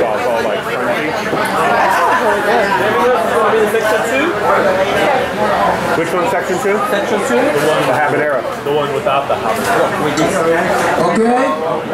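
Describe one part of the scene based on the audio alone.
A crowd of adults chatters all around indoors.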